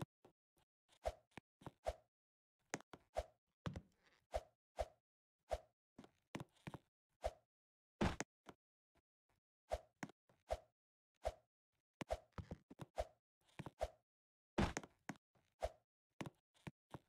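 A game character lands with short, soft thuds, over and over at an uneven pace.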